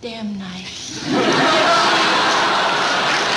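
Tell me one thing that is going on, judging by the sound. Women laugh loudly.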